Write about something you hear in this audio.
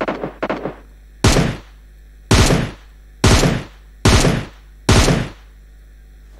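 Rifle shots ring out loudly, one after another.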